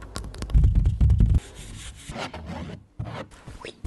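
Fingernails tap and scratch on a canvas close to a microphone.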